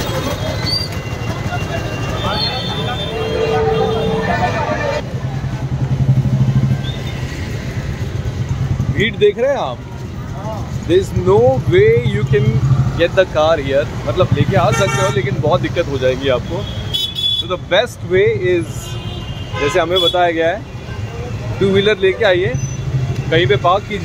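A busy crowd murmurs outdoors in a bustling street.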